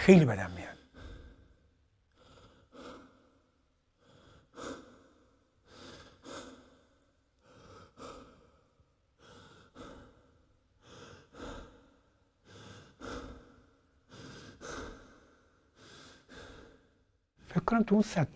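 A young man gasps and pants heavily in a steady rhythm.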